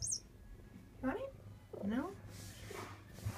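A cat makes soft chirping and mewing sounds.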